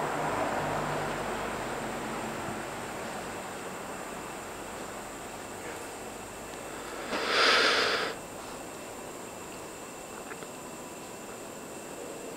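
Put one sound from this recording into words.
Hands rub and press softly against cloth.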